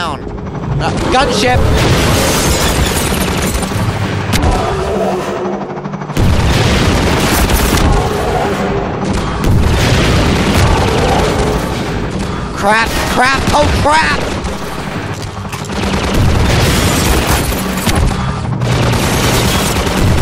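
A flying gunship whirs and roars overhead.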